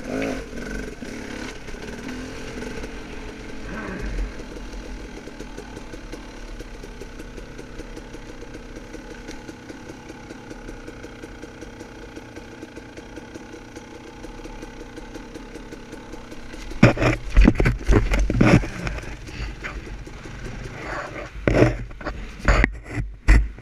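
A dirt bike engine idles and revs nearby.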